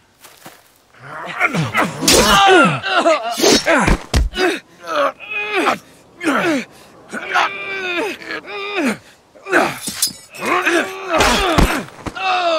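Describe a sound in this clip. A young man grunts and cries out with strain.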